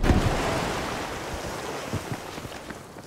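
A loud explosion booms and slowly rumbles away.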